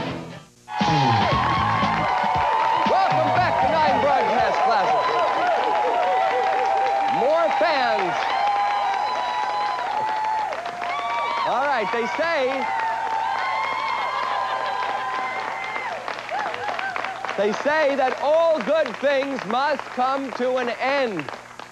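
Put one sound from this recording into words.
A crowd cheers and claps loudly in a large hall.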